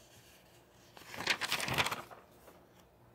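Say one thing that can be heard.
A notebook page rustles as it is turned.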